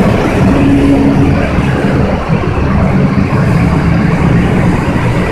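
A crowd of people talks and murmurs nearby in a large echoing hall.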